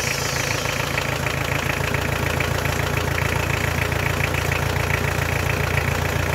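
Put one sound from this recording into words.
A diesel engine idles steadily with a rapid clatter up close.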